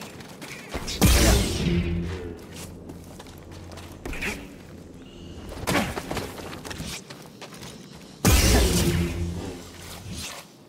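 A lightsaber hums and whooshes as it swings.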